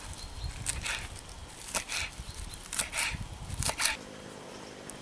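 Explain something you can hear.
A knife chops herbs on a wooden board.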